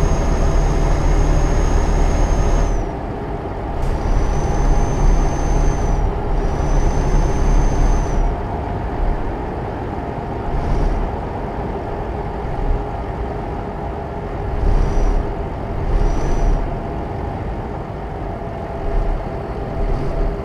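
A truck engine drones steadily as it drives.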